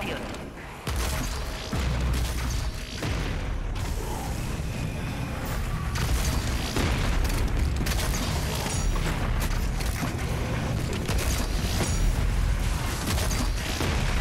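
A fiery blast booms and rumbles.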